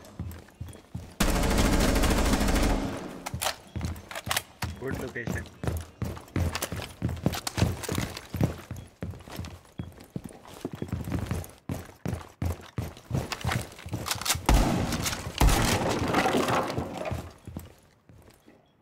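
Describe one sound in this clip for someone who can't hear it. Footsteps thud quickly across a wooden floor.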